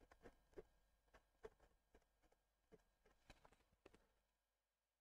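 A brush taps and dabs against a canvas.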